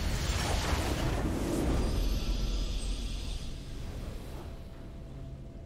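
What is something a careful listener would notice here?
A triumphant game fanfare swells loudly and then fades away.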